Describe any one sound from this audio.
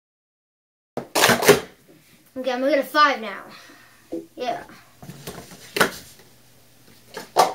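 Plastic cups clatter as they are stacked and unstacked quickly.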